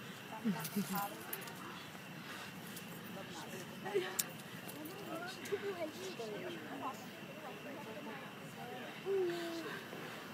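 A group of adults and children talk and call out nearby.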